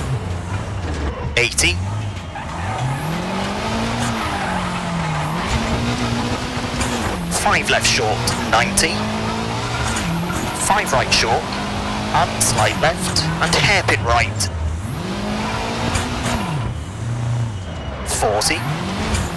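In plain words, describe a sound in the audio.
Tyres crunch and skid on loose gravel.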